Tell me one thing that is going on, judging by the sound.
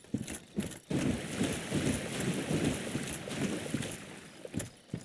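Water splashes underfoot.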